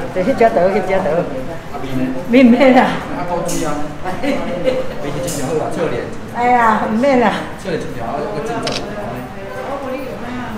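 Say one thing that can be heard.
An older woman talks with animation close by.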